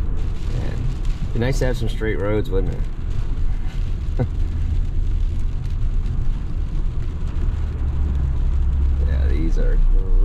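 Windscreen wipers sweep across the glass now and then.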